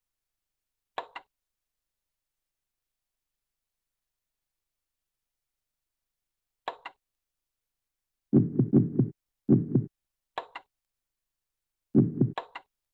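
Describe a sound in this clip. Short electronic menu blips and chimes sound as choices are made.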